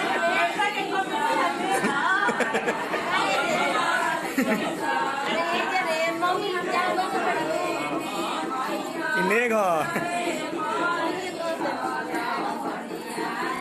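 Men and women shout and argue loudly over one another nearby.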